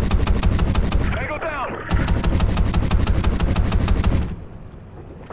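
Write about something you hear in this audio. A rifle fires rapid bursts underwater.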